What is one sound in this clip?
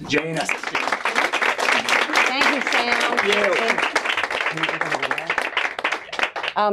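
An elderly woman talks cheerfully near a microphone.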